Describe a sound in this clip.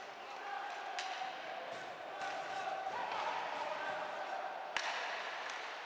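A hockey stick smacks a puck.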